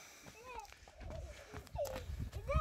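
Footsteps scuff on dry dirt.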